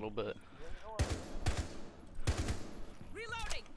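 A rifle fires a few quick shots.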